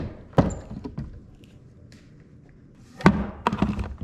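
A metal case latch clicks open.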